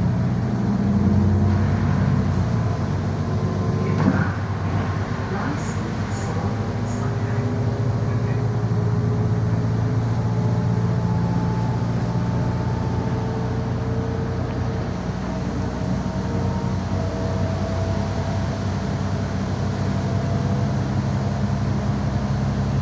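A bus engine hums steadily from close by.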